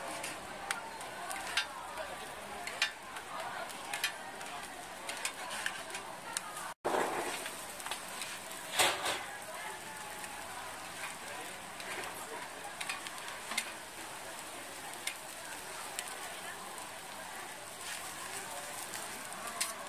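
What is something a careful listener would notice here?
A metal spatula scrapes and clicks on a hot griddle.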